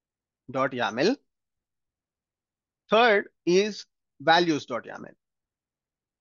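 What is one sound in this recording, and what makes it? A young man speaks calmly into a close microphone, in short phrases.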